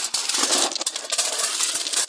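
A tool scrapes through loose gravel.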